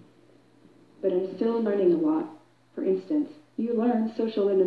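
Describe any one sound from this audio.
A robotic woman's voice speaks calmly through a loudspeaker.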